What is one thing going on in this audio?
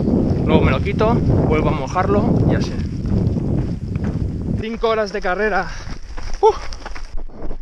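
A man speaks close to the microphone with animation.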